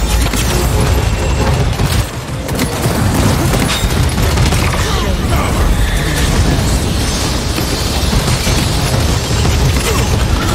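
Explosions and impacts boom loudly.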